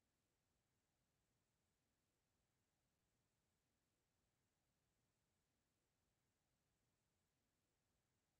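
A clock ticks steadily.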